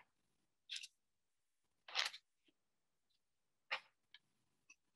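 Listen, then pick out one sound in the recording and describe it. Paper rustles and crinkles in short bursts close by.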